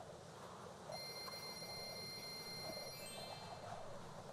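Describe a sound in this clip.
Quick chiming tones ring out as a tally counts up.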